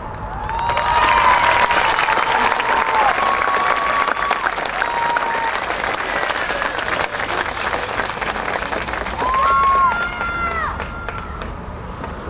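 A marching band plays loud, held brass chords outdoors.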